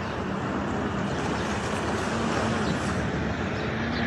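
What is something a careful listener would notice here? Water splashes loudly as a car drives through the surf.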